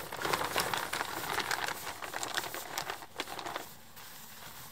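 A tarp rustles and flaps as it is pulled.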